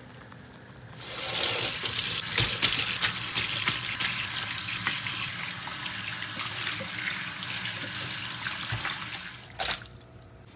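Water runs from a tap into a metal colander.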